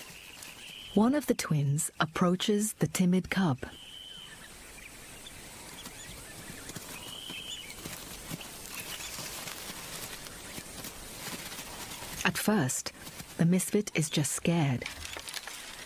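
Young lion cubs mew and growl close by.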